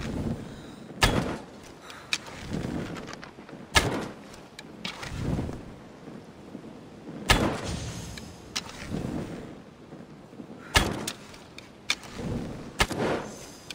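A bow twangs as arrows are shot, again and again.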